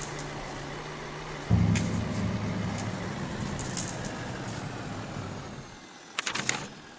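A truck engine rumbles and revs as the truck drives over rough ground.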